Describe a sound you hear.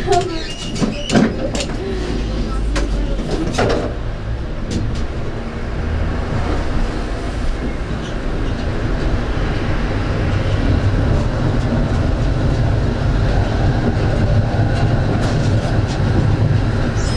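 City traffic hums in the background.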